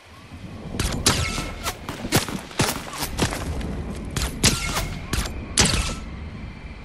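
Rifle shots ring out in quick bursts.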